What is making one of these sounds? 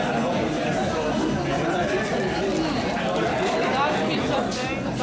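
Several young men talk and laugh together close by.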